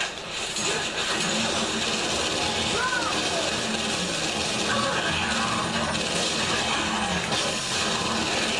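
Rapid gunfire rattles from a television speaker.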